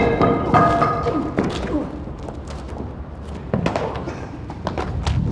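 Shoes scuff and stamp on concrete.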